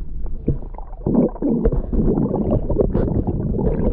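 Air bubbles gurgle up from a swimmer.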